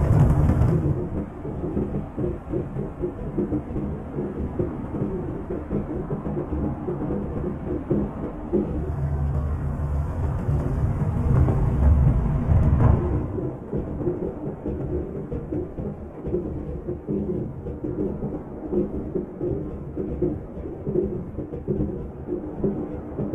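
A truck engine rumbles steadily, louder between about 9 and 13 seconds.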